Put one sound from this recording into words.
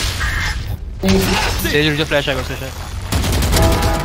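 Rapid bursts of gunfire crack and rattle.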